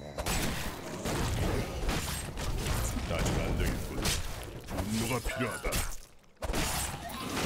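Weapons strike and magic bursts crackle in a fast, noisy fight.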